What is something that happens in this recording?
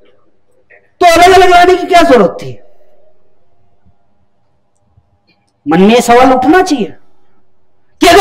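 A man lectures with animation through a microphone, in short bursts with pauses.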